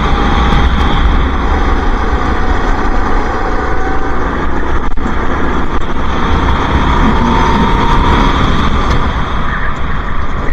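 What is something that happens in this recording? A kart engine buzzes loudly up close, revving as it speeds along.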